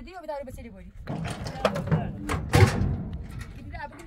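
Metal clanks against a pickup truck's tailgate.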